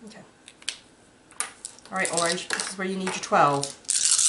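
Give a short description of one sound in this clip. Dice click and clatter as a hand scoops them up.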